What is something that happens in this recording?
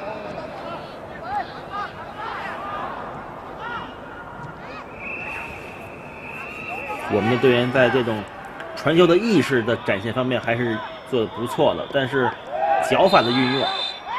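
A large crowd murmurs and cheers across an open stadium.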